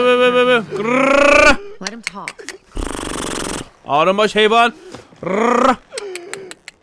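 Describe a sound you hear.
A man growls and shouts in a rough, strained voice.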